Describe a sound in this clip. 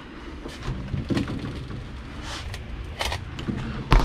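A freezer lid opens with a soft thud.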